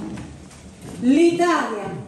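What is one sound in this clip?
A woman sings in a clear, high voice in an echoing room.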